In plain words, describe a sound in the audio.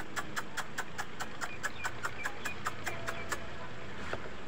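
A small chick chirps rapidly and steadily.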